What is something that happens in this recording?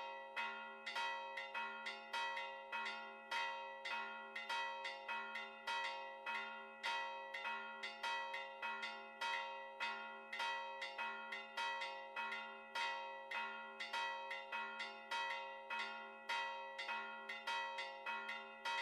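Church bells ring out in a fast, steady peal.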